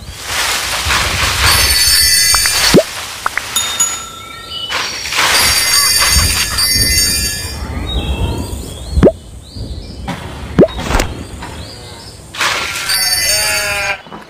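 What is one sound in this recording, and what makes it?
Game chimes and pops sound as items are collected.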